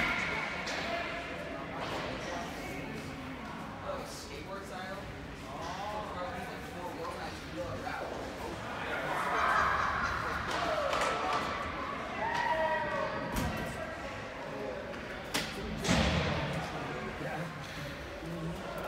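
A crowd of spectators chatters in a large echoing rink.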